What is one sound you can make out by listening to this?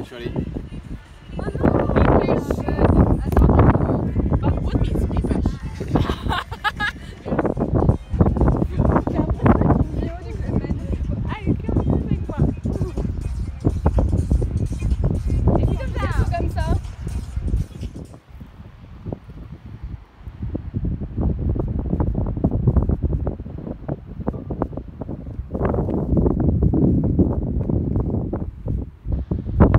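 Strong wind gusts roar into the microphone outdoors.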